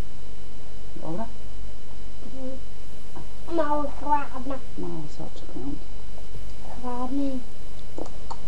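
A woman talks softly close by.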